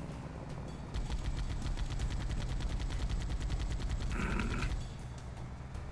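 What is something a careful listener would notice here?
Rapid gunfire rattles from a mounted gun.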